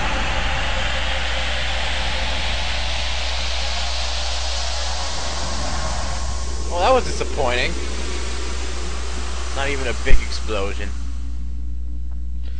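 A loud, rushing whoosh of magic swells and then dies away.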